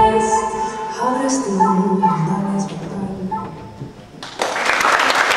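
Music plays loudly through speakers in a large hall.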